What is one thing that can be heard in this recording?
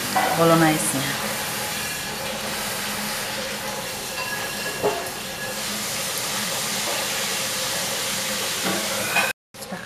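A spoon spreads sauce in a foil tray.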